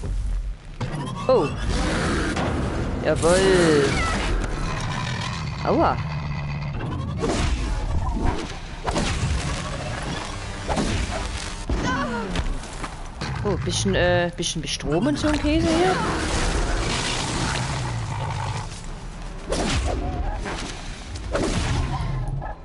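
Mechanical creatures screech and whine with shifting pitch.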